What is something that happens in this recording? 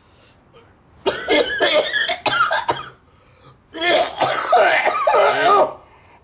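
A middle-aged man coughs and splutters close by.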